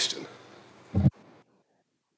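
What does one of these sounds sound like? A microphone thumps once as it is knocked.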